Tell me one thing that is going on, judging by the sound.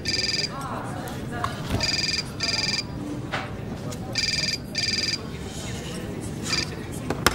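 A phone rings with a repeating electronic tone.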